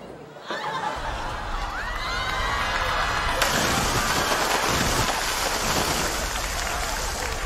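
Liquid pours down heavily and splashes onto the pavement.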